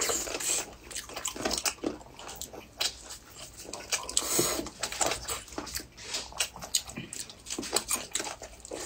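A man slurps soup loudly close to a microphone.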